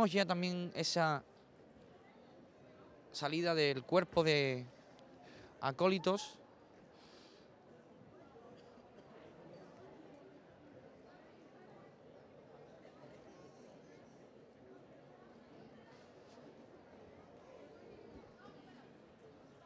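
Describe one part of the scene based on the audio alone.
A crowd murmurs quietly in the background.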